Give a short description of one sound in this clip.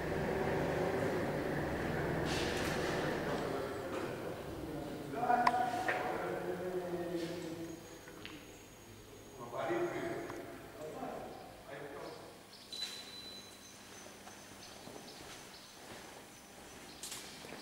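Factory machinery hums and clatters steadily.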